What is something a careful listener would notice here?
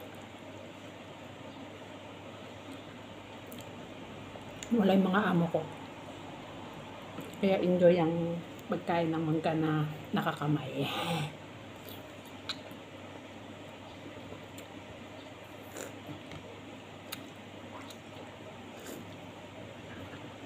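A young woman chews and bites into soft fruit close by.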